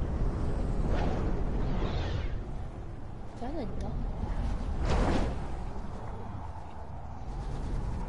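A video game character flies through the air with a steady rush of wind.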